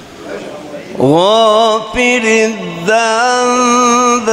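An elderly man chants loudly into a microphone with long held notes.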